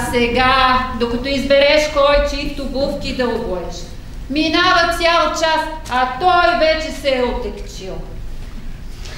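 A woman speaks with animation on a stage, heard from across a hall.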